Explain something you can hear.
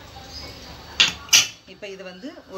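A weight clicks onto a pressure cooker lid.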